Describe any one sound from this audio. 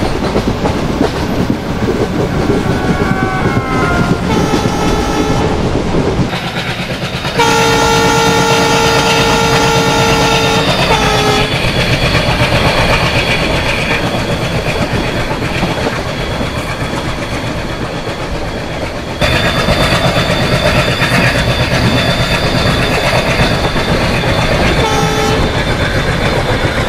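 Train wheels clatter rhythmically over rail joints.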